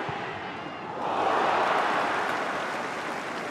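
A stadium crowd cheers in a sudden loud burst.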